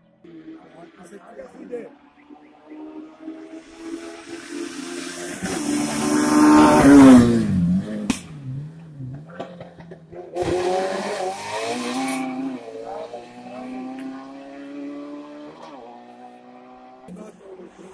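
A racing car engine revs higher and higher as the car approaches, roars past close by, and fades into the distance.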